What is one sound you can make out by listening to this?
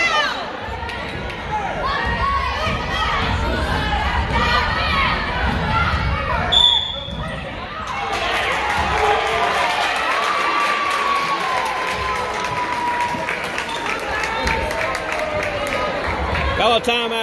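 A crowd of spectators shouts and cheers in an echoing gym.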